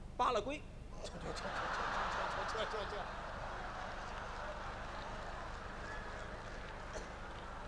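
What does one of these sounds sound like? A large audience laughs and applauds in a big hall.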